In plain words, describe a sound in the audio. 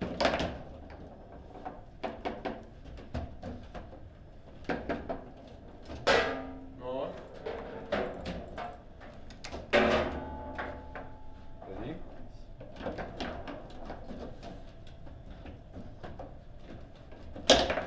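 Foosball rods clack and rattle as players spin them.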